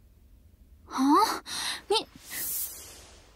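A young woman exclaims in surprise.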